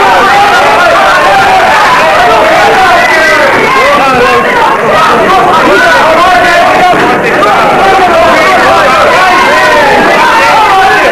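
A crowd shouts and cheers loudly throughout.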